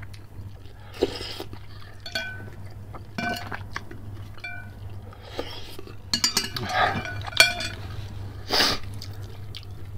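A man slurps soup loudly, close up.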